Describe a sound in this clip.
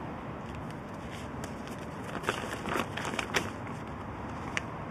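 Paper crinkles as it is unfolded.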